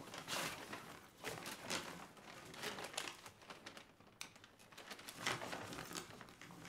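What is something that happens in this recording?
A plastic carrier bag rustles.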